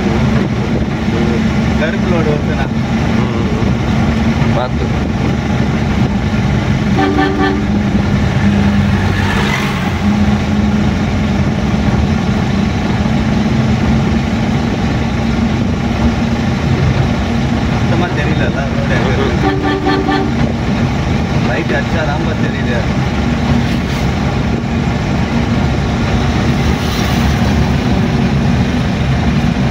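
A vehicle engine hums steadily from inside the cabin.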